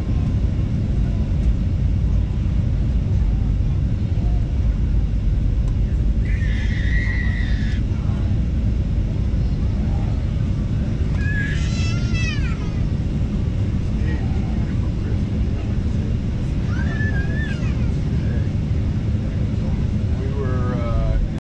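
A deep, steady roar of jet engines fills an aircraft cabin.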